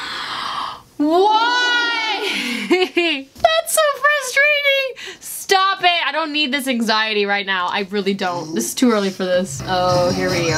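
A young woman sings loudly and with feeling, close to a microphone.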